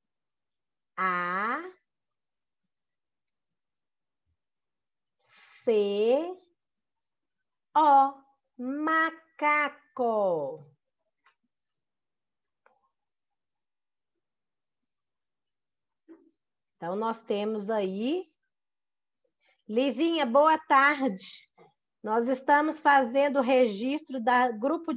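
A woman speaks slowly and clearly over an online call, pausing between words.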